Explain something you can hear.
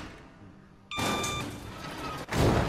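An electronic keypad beeps as a button is pressed.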